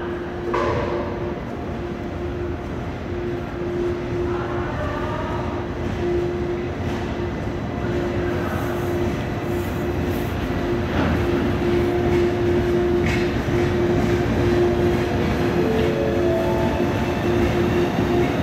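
A steady tone hums from the train.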